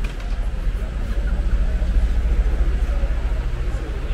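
Suitcase wheels roll over pavement.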